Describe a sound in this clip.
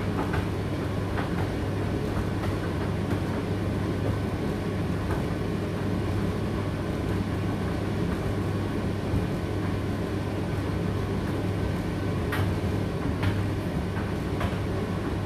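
A condenser tumble dryer hums as its drum turns.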